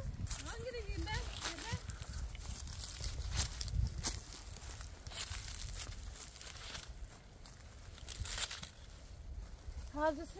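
Plants rustle and snap as a hand picks them.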